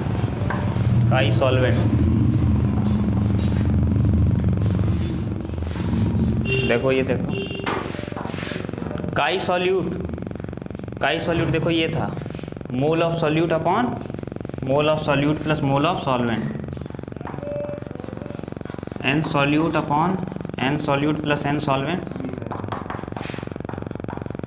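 A man speaks calmly, explaining, in a room with some echo.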